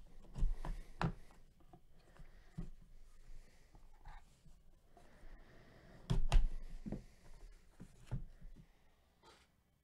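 A cardboard box rustles and knocks as hands handle it close by.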